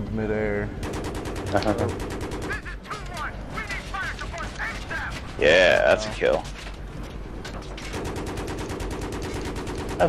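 A heavy cannon fires in rapid bursts.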